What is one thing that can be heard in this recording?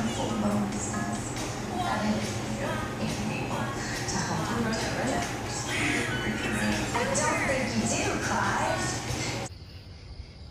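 A young child babbles nearby.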